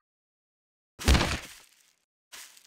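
A game character lands hard with a heavy thud.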